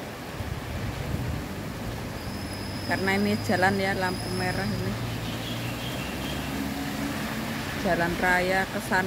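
A car drives by on a wet road, tyres hissing.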